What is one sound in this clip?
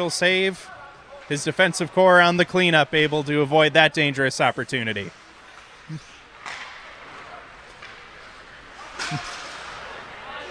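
Skates scrape faintly on ice in a large echoing rink.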